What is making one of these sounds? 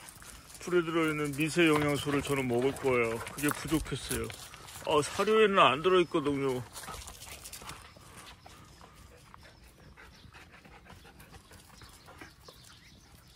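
Dogs' paws shuffle softly on gravel.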